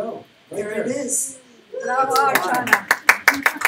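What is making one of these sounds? A woman speaks through a microphone to a room.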